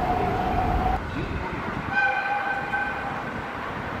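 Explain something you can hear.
A train hums as it approaches on the tracks.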